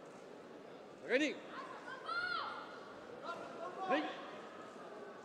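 A young man gives sharp shouts in a large echoing hall.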